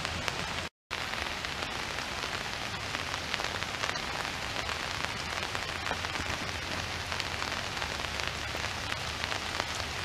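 Rain patters on a lake and on leaves.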